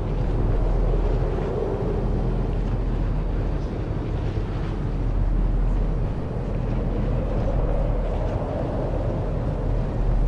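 A hovering vehicle's engine hums and rumbles steadily.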